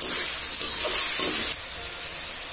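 A spoon scrapes and stirs food in a metal pan.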